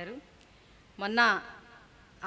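A woman speaks calmly into a microphone over a loudspeaker.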